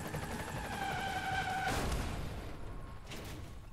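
A car crashes with a loud metallic smash.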